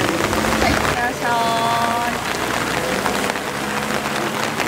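A car engine revs as the car pulls away on the wet road.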